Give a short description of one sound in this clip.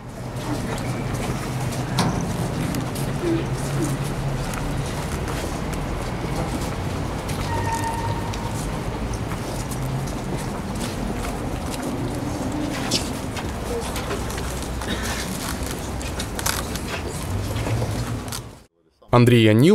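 A crowd murmurs softly nearby.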